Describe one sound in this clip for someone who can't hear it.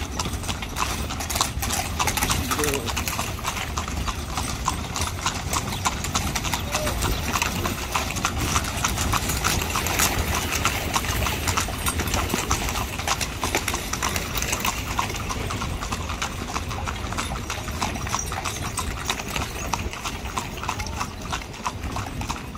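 A horse-drawn carriage rattles along on its wheels.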